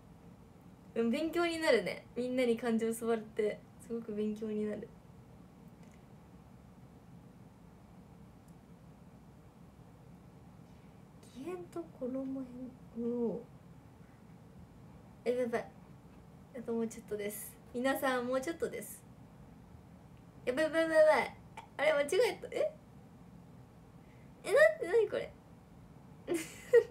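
A young woman talks close to the microphone in short bursts with pauses.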